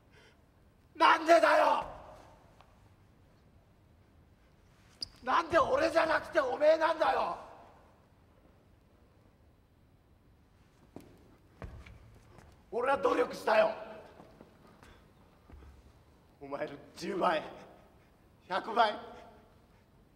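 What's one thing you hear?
A middle-aged man shouts angrily in short bursts in an echoing hall.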